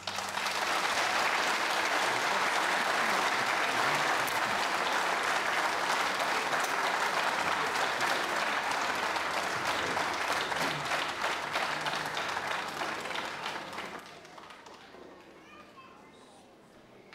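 A large audience applauds loudly outdoors, then the applause fades.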